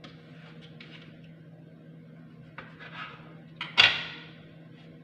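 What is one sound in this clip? A knife cuts through bread and taps on a cutting board.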